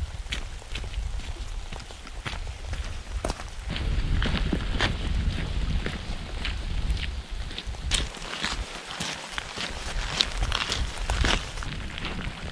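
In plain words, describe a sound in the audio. Boots crunch on gravel.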